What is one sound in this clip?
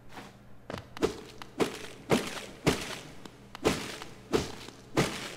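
Heavy thumps strike again and again at a steady beat.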